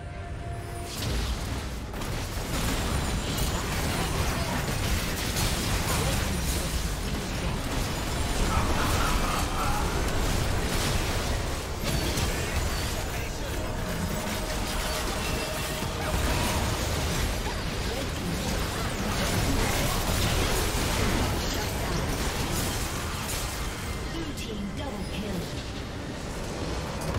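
Magic blasts, clashes and explosions crackle in a fierce video game battle.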